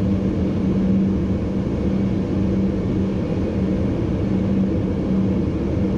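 A train's motor hums with a steady low drone.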